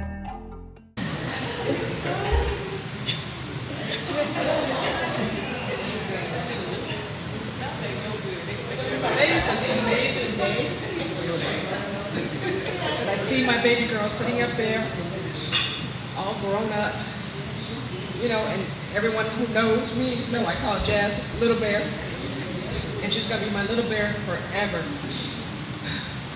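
A woman speaks with emotion into a microphone, heard through a loudspeaker.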